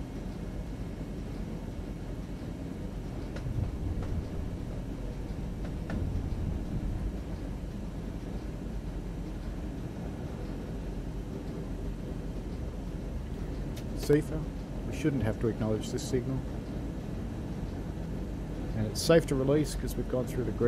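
A train engine rumbles steadily as the train rolls along the track.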